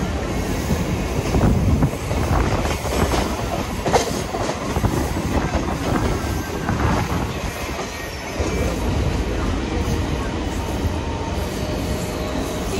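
Wind rushes past an open train door.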